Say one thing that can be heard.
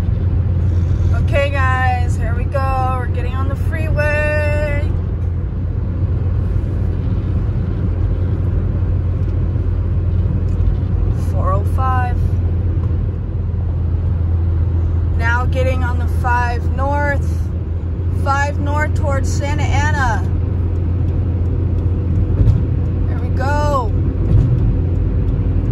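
A car's engine and tyres hum steadily on a highway.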